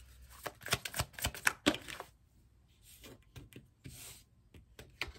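Cards are shuffled in hands with quick, crisp flicks.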